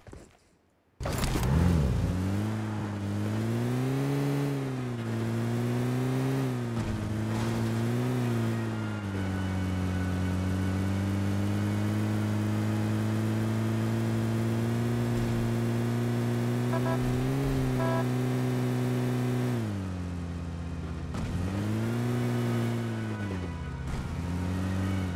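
A car engine hums loudly and revs up and down as it drives.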